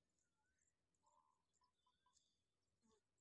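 A black francolin calls with harsh, clipped notes.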